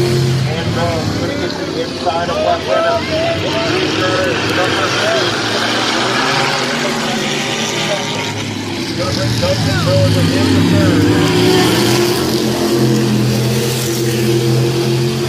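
Race car engines roar around a track, growing louder as the cars pass close by.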